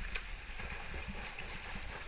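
A swimmer kicks and splashes across the pool.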